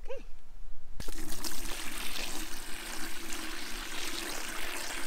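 Water gushes from a hose into a plastic bucket.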